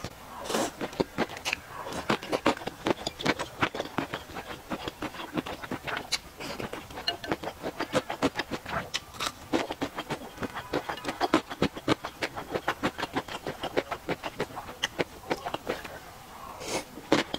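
A young woman chews food wetly, close to a microphone.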